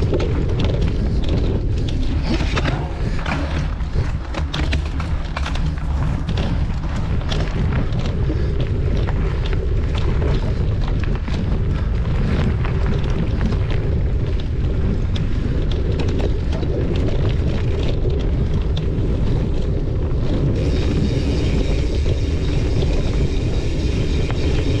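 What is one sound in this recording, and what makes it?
Wind rumbles loudly against a moving rider.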